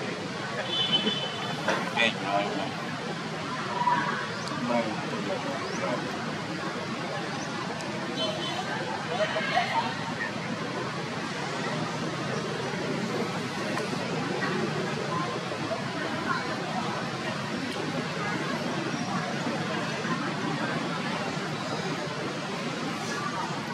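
A baby monkey suckles with soft, wet sucking sounds.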